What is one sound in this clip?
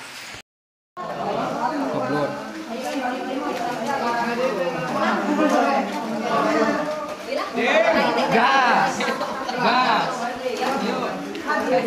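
A crowd of men and women talk and chatter nearby, echoing in a large cave.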